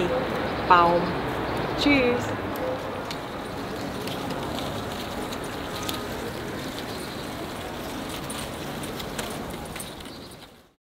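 Wind blows steadily outdoors, rustling ribbons.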